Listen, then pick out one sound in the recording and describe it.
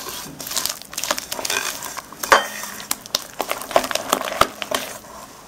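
A spatula scrapes and squelches through thick batter in a glass bowl.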